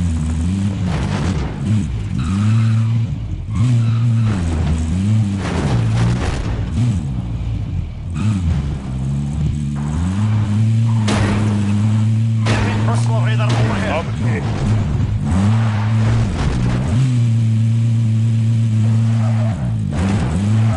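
A vehicle engine roars and revs up and down steadily.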